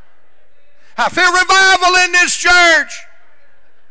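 An elderly man speaks loudly and with animation through a microphone.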